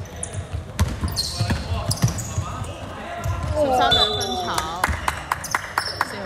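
A basketball bounces with dull thumps on a wooden floor in a large echoing hall.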